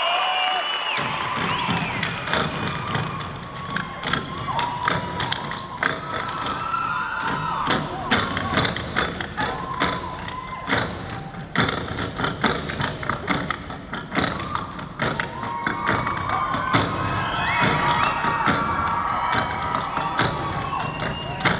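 Tap shoes clatter in quick rhythms on a wooden stage.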